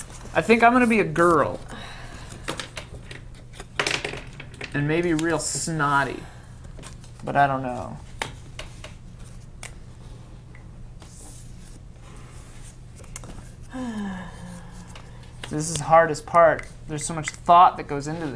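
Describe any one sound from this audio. Pens scratch on paper.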